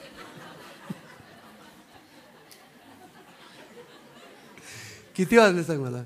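A middle-aged man laughs softly into a microphone.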